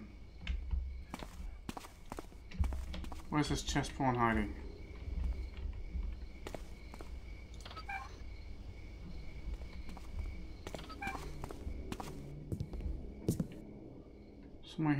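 Footsteps tread slowly on a stone floor.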